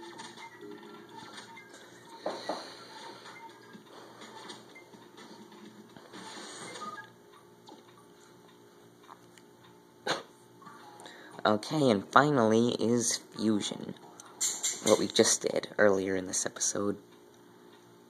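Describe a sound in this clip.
Video game music and sound effects play from a television speaker.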